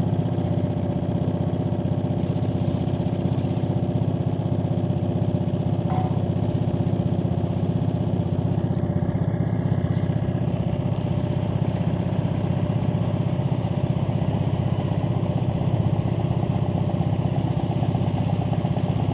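Water splashes and laps against a moving boat's hull.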